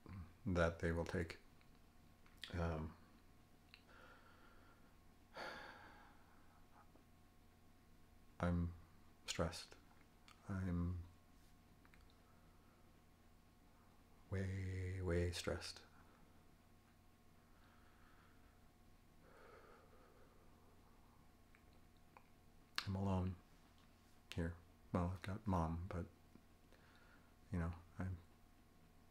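A middle-aged man speaks calmly in short bursts, close to the microphone, with long pauses.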